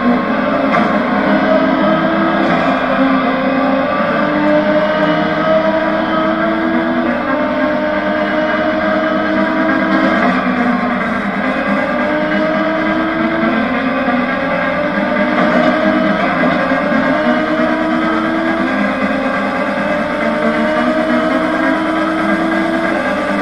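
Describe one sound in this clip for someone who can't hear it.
A racing car engine revs up through the gears, its pitch climbing and dropping back again and again.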